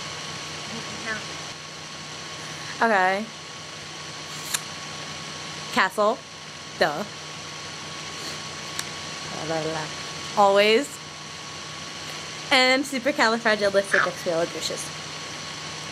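A teenage girl laughs over an online call.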